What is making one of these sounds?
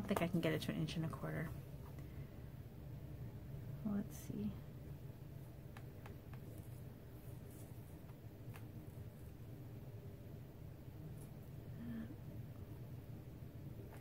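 Paper rustles and slides under hands.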